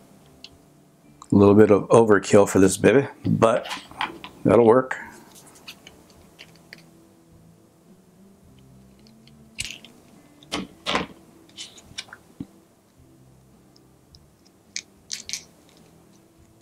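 Tape crackles as it is pulled off a roll.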